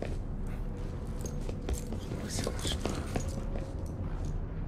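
Footsteps clatter on a metal floor.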